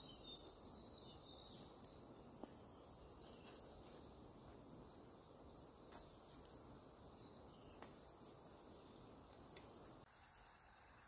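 Soil rustles as a person plants seedlings by hand.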